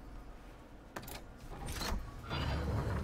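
A heavy lever clunks into place.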